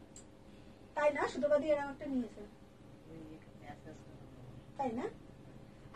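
A woman speaks calmly, close by, in short bursts.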